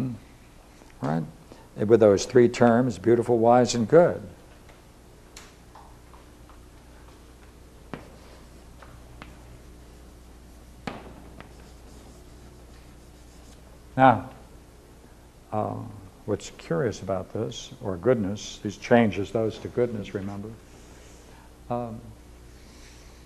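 An elderly man lectures calmly, close by.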